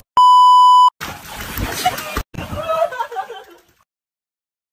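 Water splashes in a pool.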